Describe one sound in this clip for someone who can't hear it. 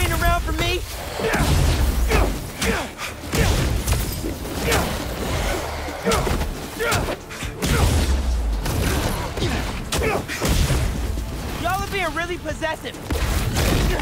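Heavy punches land with dull thuds and whooshes.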